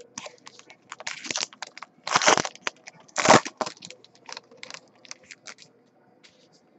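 A foil card pack crinkles as hands tear it open.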